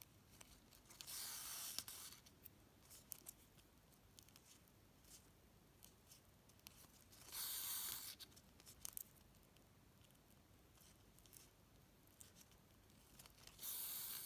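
Thread rasps as it is pulled through stiff ribbon.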